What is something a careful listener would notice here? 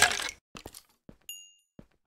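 A stone block cracks and crumbles.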